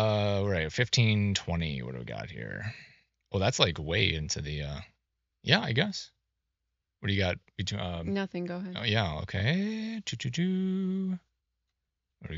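A middle-aged man speaks calmly and quietly.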